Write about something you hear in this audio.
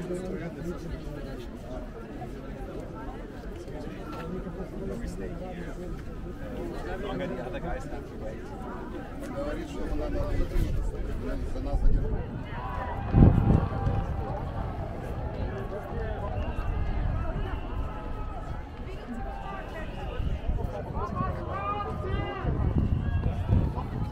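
Many people murmur and chatter in a large open crowd.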